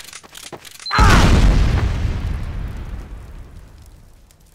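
An explosion booms nearby and rumbles away.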